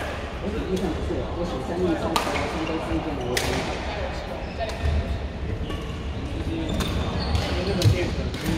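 Men talk calmly in the distance across a large echoing hall.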